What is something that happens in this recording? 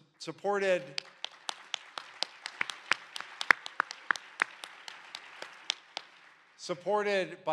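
A few people clap their hands.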